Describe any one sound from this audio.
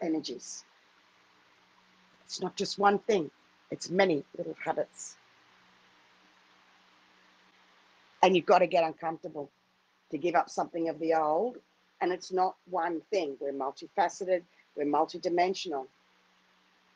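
A middle-aged woman speaks calmly and warmly, close to a microphone.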